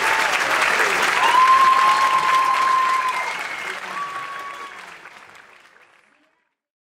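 A large crowd applauds and cheers in a big echoing hall, then fades away.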